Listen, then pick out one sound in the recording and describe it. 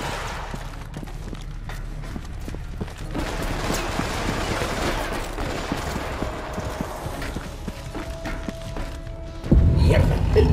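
Heavy boots thud on a metal floor.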